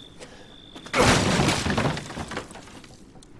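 A wooden crate smashes apart with splintering cracks.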